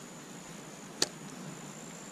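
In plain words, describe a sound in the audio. A fishing reel clicks once, close by.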